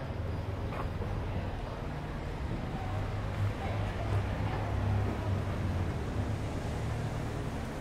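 Traffic hums steadily along a nearby street, outdoors.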